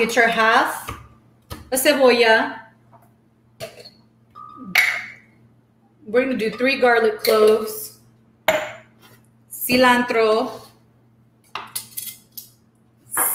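Vegetables drop into a glass blender jar with soft knocks.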